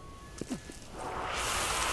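Smoke hisses loudly from a vent.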